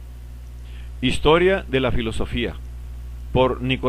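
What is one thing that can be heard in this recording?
A man reads aloud calmly into a microphone, close up.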